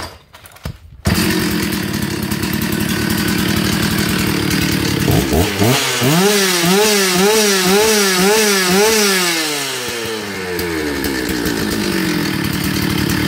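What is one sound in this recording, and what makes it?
A chainsaw engine roars loudly, revving up and down.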